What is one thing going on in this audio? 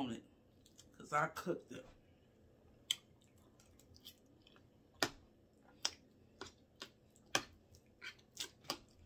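A young woman chews food wetly and smacks her lips.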